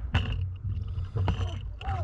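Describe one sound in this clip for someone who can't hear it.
Air bubbles gurgle and rumble from a diver breathing underwater.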